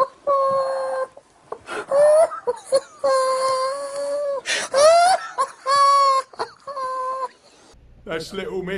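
A man laughs helplessly and wheezes.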